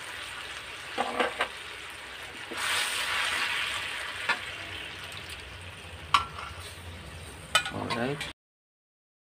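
A metal spoon scrapes and clinks against a wok.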